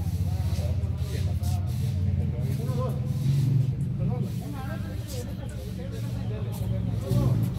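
Young men talk to each other outdoors.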